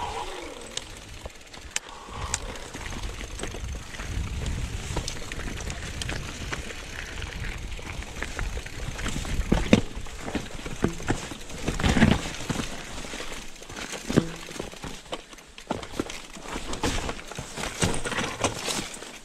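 A bike rattles and knocks over bumps.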